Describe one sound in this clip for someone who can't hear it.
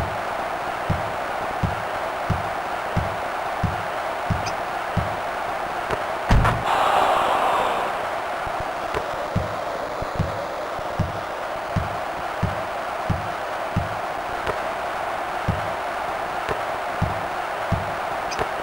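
A basketball bounces in a steady dribbling rhythm.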